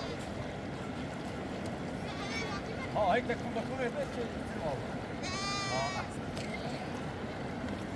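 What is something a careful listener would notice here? A river rushes and burbles steadily outdoors.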